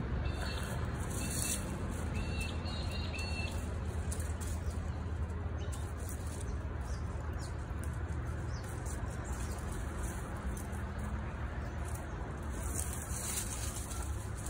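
Dry plant stalks rustle and snap as they are pulled from the ground.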